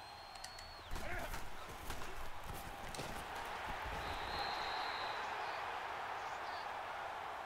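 A stadium crowd roars loudly.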